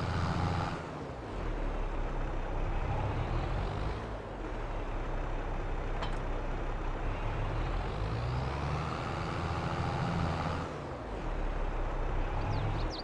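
A tractor engine rumbles steadily, rising and falling as it revs.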